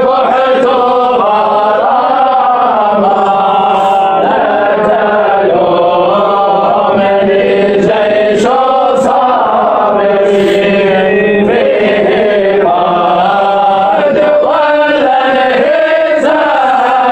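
An elderly man chants a long, melodic song close to a microphone.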